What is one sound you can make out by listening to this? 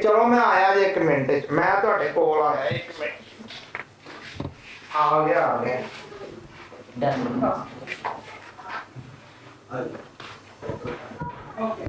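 A man talks on a phone with animation, close by.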